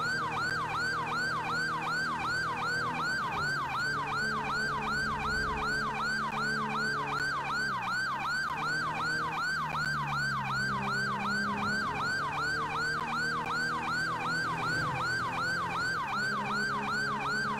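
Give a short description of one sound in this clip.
A car engine hums and shifts pitch as the car speeds along.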